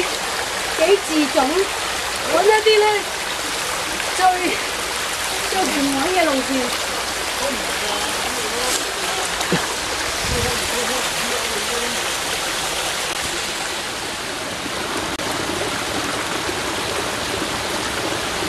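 A waterfall splashes steadily over rocks nearby.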